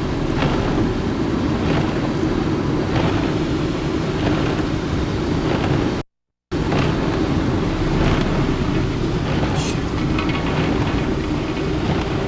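Tyres roll over a wet road.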